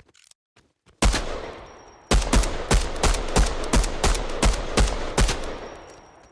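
Rapid gunshots fire in quick bursts and echo.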